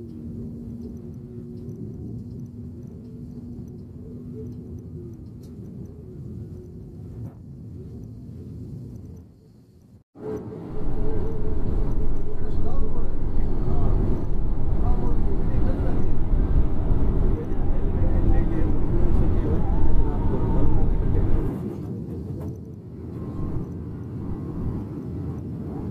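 A vehicle's engine hums steadily with a low rumble.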